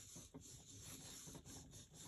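A small tool taps and scrapes on card.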